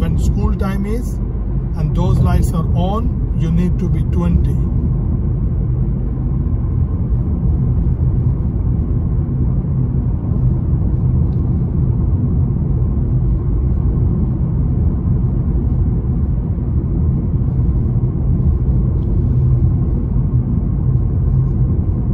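A car engine hums steadily with road noise from the tyres, heard from inside the car.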